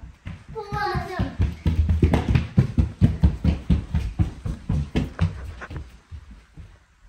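Children's footsteps thump quickly across a hard floor.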